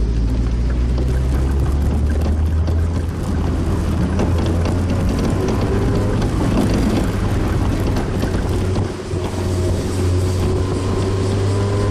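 Wind rushes past an open-top car.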